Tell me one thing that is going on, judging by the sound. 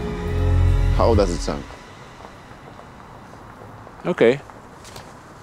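A young man speaks briefly and calmly nearby.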